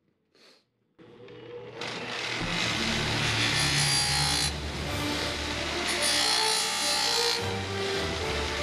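A bench grinder whirs as it runs.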